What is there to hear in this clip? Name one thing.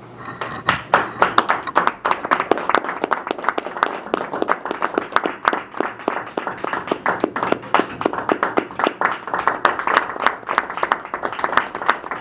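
An audience claps steadily in a room.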